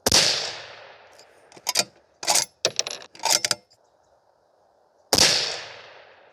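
A rifle fires a loud shot that echoes outdoors.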